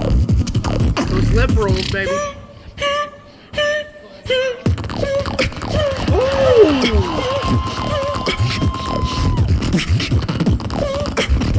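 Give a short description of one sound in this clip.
A young man beatboxes into a microphone through loudspeakers, with sharp clicks, deep kick drums and hummed whistling tones.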